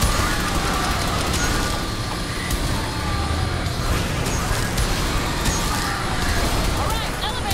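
Laser beams sizzle and blast.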